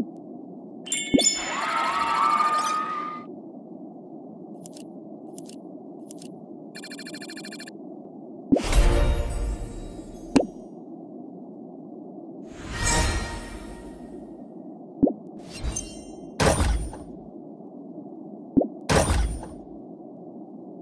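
Bright game reward jingles play with whooshing swells.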